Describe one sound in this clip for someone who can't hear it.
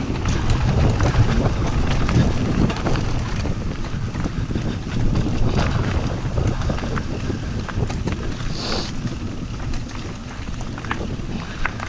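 Wind rushes past a microphone.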